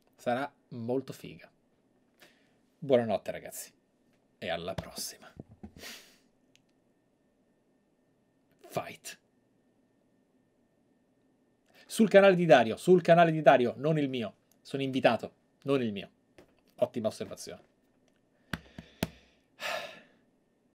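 A man speaks with animation into a close microphone, in bursts with pauses.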